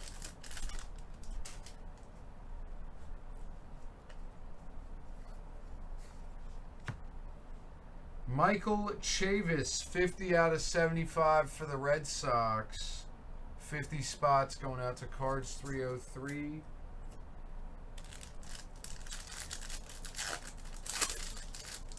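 A plastic wrapper crinkles as hands tear it open.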